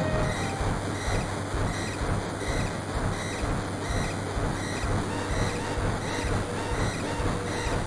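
Rhythmic video game music plays with a steady, pulsing beat.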